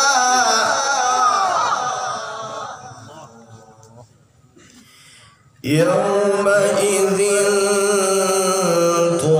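A young man chants a long melodic phrase through a microphone and loudspeakers, with a slight echo.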